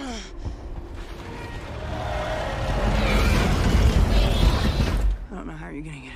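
A huge army roars and rumbles in the distance.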